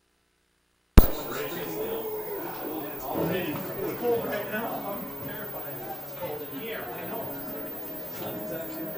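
A crowd of spectators talks and murmurs nearby.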